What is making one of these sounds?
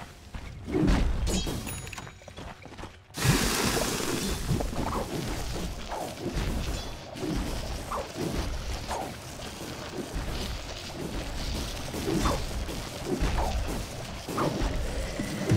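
Weapons clash and spells crackle in a busy fight.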